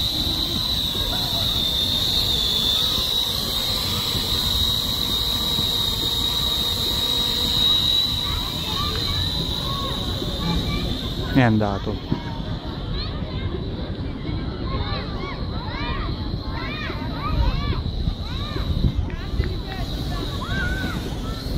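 A small drone buzzes with a high, steady whine overhead and gradually grows fainter.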